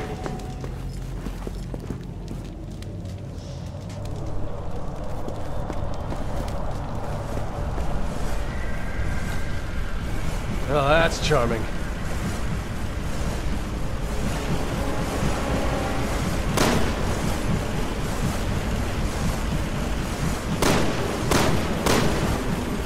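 Footsteps walk slowly on a stone floor in a large echoing space.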